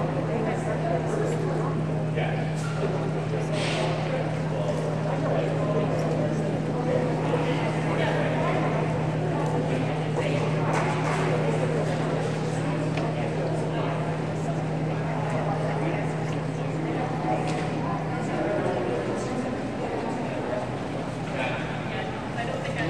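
A crowd of people chatters and murmurs in a large echoing hall.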